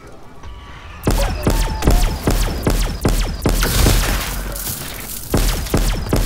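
A ray gun fires rapid crackling blasts.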